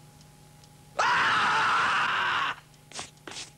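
A cartoon creature screams loudly.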